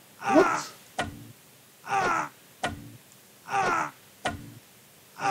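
Weapons strike sharply in a short fight, several times.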